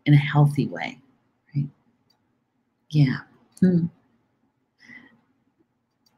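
A middle-aged woman speaks calmly and closely into a microphone, with short pauses.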